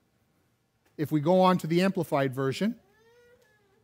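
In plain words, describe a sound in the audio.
A middle-aged man speaks clearly into a microphone in a room with some echo.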